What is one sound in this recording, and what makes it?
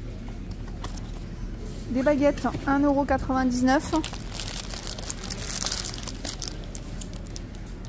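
Plastic packaging crinkles as a hand handles it.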